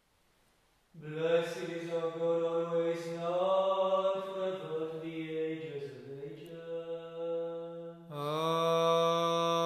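A man chants in a steady, sung voice in an echoing room.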